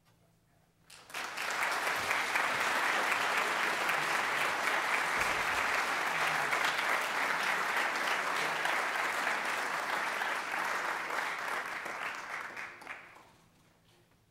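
An audience applauds loudly in a large hall, then the applause fades away.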